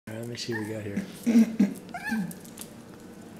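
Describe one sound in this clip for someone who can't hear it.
A small dog growls playfully.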